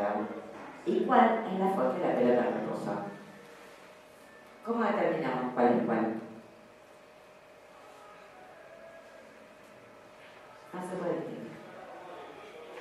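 A woman speaks calmly into a microphone, heard through loudspeakers, with pauses between phrases.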